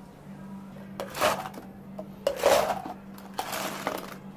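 Ice cubes clatter and clink into plastic cups.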